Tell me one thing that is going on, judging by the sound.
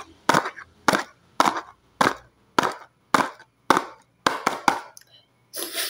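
A hand taps an object against a box in a steady rhythm.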